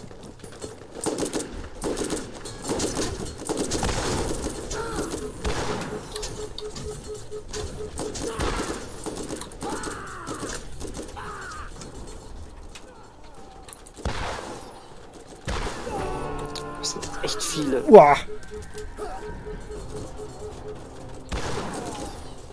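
Rifle shots crack and echo.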